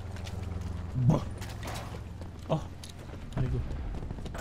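Footsteps thud on dry ground.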